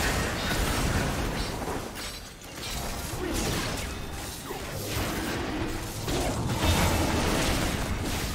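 Game spell effects burst and clash in a fast battle.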